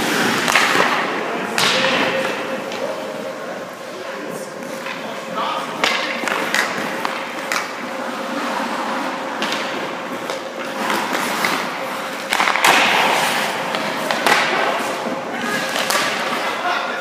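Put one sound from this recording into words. Pucks smack against sticks and the boards with sharp cracks that echo through a large rink.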